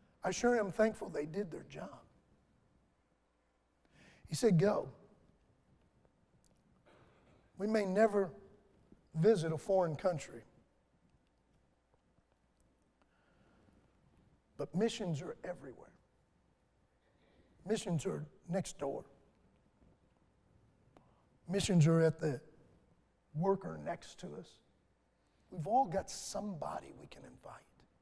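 A middle-aged man speaks calmly into a microphone in short phrases with long pauses.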